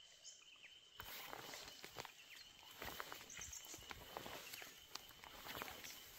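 Dry scrub rustles and swishes as someone walks through it close by.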